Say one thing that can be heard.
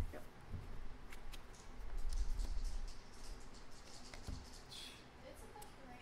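Cards slide across a wooden table.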